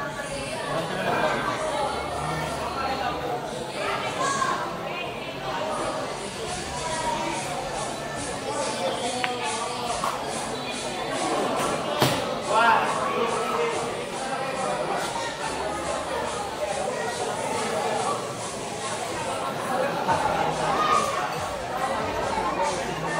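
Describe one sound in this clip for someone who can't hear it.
A crowd of men chatters nearby in the background.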